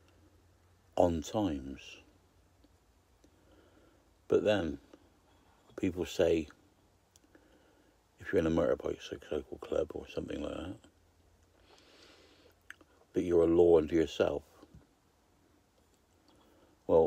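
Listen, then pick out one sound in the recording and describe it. An elderly man speaks close to the microphone in short bursts, with pauses between.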